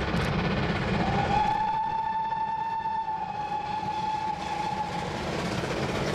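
A steam locomotive's whistle blows a long, steady note.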